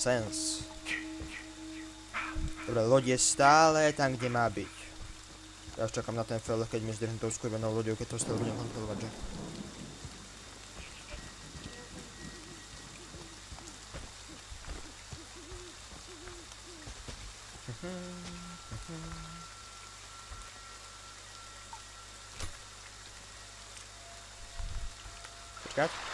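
Footsteps crunch slowly over damp ground.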